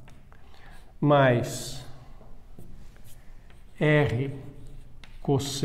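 An older man speaks in short phrases, as if lecturing.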